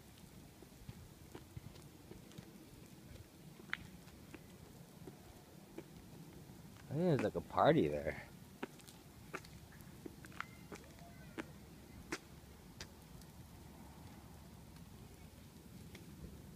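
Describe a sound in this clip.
Small wheels roll and click over a concrete sidewalk.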